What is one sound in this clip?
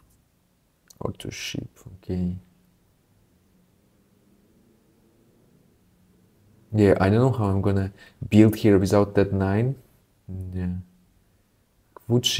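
A young man talks casually and close into a microphone.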